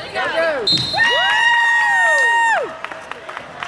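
A referee's whistle blows in a long, loud blast.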